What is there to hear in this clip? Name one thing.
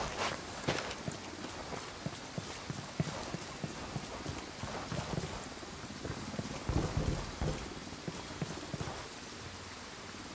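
Footsteps crunch on dirt and gravel at a steady walking pace.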